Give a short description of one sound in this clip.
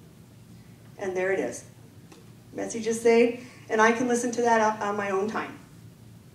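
A woman speaks through a microphone and loudspeakers in a large room.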